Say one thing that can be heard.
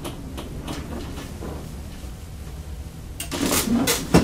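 A traction elevator car hums as it travels in the shaft.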